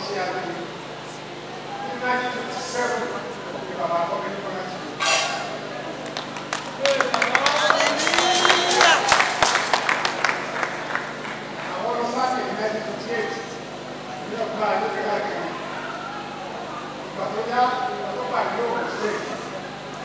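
An elderly man speaks into a handheld microphone, close by and with animation.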